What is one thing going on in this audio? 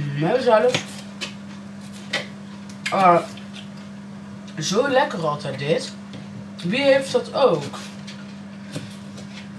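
A knife chops vegetables on a cutting board.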